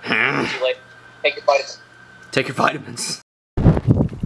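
A young man speaks with animation through a small speaker.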